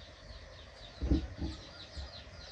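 Hands thump dully inside a clay oven.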